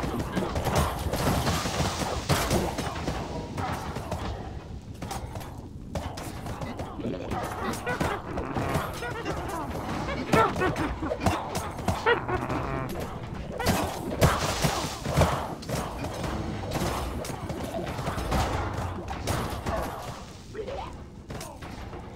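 Small explosions pop and thud repeatedly.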